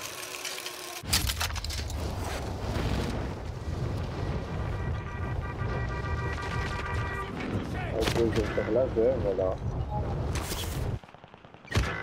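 Wind rushes loudly past during a fast parachute descent.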